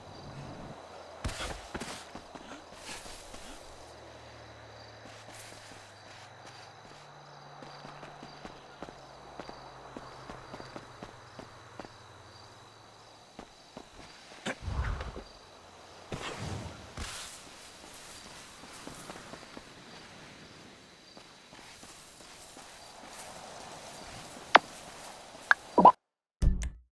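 Quick footsteps patter over grass and gravel.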